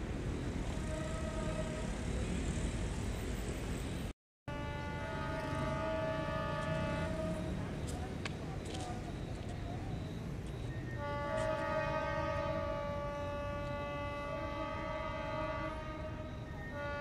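A train horn blows in long blasts.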